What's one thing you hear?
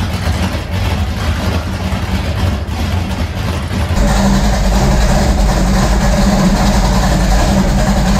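A car engine idles with a deep, uneven rumble.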